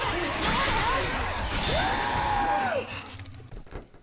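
Zombies snarl and shriek in a frenzied horde.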